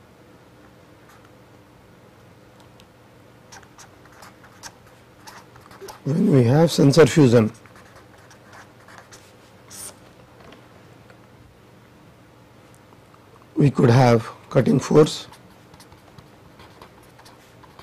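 A marker pen squeaks and scratches on paper.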